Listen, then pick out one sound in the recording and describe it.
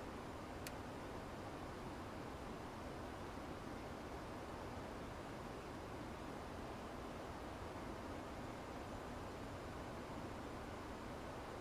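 Jet engines hum steadily with a low rushing of air.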